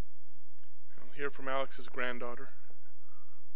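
A middle-aged man speaks briefly and calmly into a microphone.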